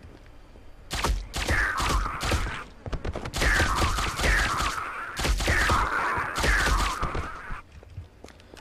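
A nail gun fires rapid bursts of sharp shots.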